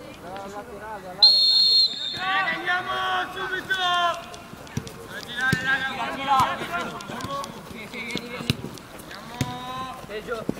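Young male players shout and call out loudly outdoors.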